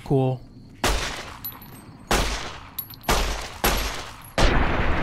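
A pistol fires several sharp, loud shots.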